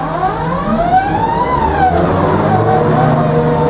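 An electric tram's motor whines, rising in pitch and then falling away.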